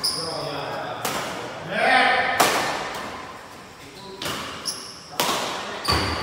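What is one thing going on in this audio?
Shuttlecocks are struck sharply by rackets in a large echoing hall.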